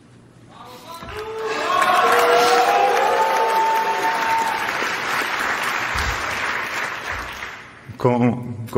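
An audience applauds loudly and cheers.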